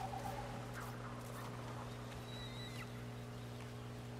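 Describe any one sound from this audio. Footsteps crunch softly over grass and dirt.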